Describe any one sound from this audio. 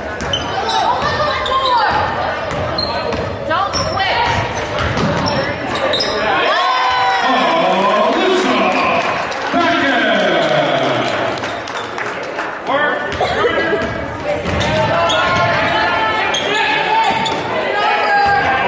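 A crowd of men and women chatters and calls out in a large echoing gym.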